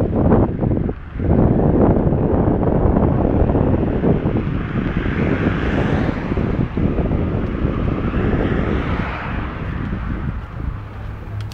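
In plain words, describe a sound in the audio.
Wind rumbles and buffets loudly outdoors, then eases.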